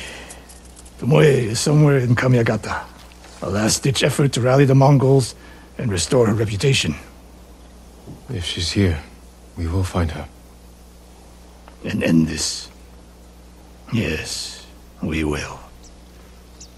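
A middle-aged man speaks calmly and gravely.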